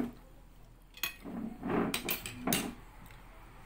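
Cutlery clinks against a plate.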